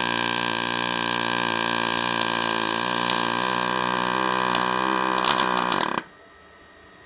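A welding arc hums and buzzes steadily.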